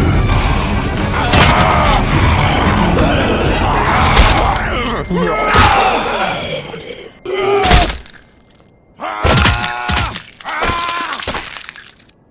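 A man grunts and strains in a struggle.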